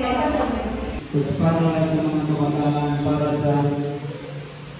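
A man speaks into a microphone through a loudspeaker in an echoing room.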